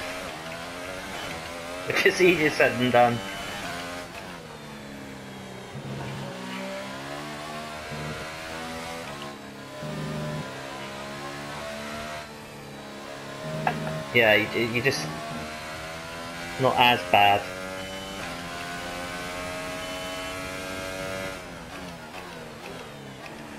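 A racing car engine screams at high revs, rising and dropping as it shifts gears.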